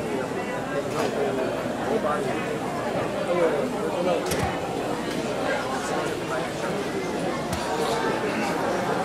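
A group of girls sings together.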